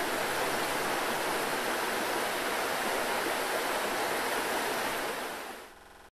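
A shallow river rushes steadily over rocks, then fades out.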